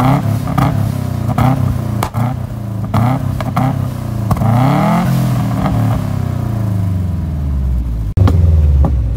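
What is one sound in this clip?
A sports car engine revs hard through its exhaust, rising and falling in bursts.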